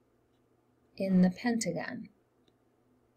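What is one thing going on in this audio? A middle-aged woman speaks briefly and calmly into a microphone.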